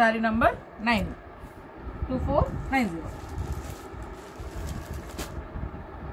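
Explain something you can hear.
Fabric rustles and crinkles as it is handled.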